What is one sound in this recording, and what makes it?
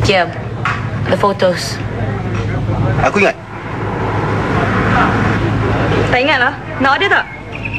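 A young woman answers softly, close by.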